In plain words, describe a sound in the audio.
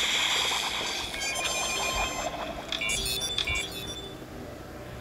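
A game victory jingle chimes.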